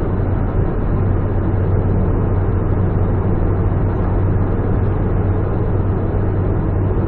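A car drives fast through a tunnel with a steady low roar of tyres on the road.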